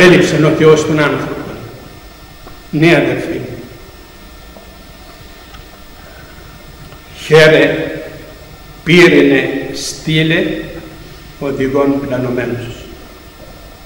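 An elderly man speaks slowly and solemnly into a microphone, his voice echoing in a large hall.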